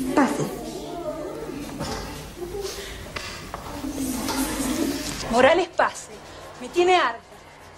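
A teenage girl speaks calmly and close by.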